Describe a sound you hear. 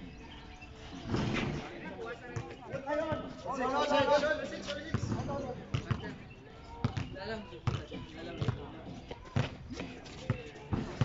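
A basketball bounces on an outdoor court.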